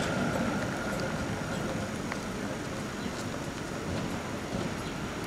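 A tram rumbles past in the distance and fades away.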